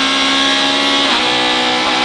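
A rally car engine drops in pitch briefly as a gear changes.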